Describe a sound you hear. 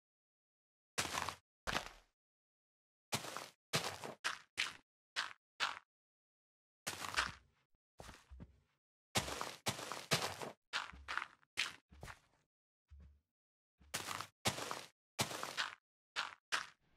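Short gritty crunches of digging into earth and stone repeat in quick bursts.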